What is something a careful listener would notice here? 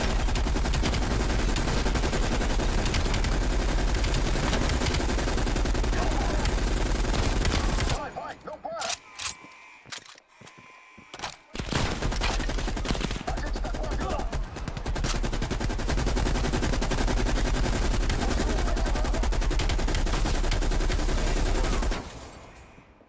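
An automatic rifle fires rapid, loud bursts.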